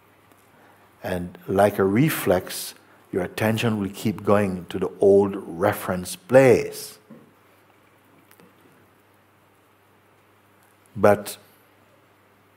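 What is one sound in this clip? An elderly man speaks calmly and thoughtfully, close to a microphone.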